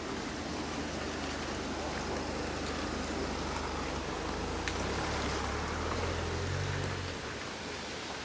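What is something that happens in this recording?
A car engine hums as the car rolls slowly past close by.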